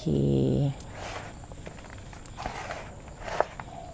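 Hands rustle and scrape through loose soil.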